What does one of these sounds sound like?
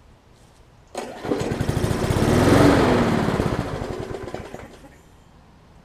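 A lawn mower engine sputters briefly and dies.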